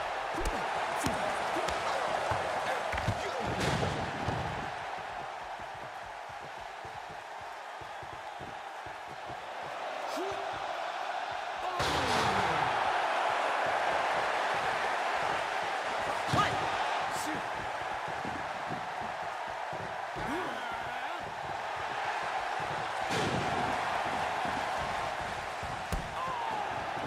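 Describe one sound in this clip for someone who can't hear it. Wrestlers' bodies thud onto the ring mat.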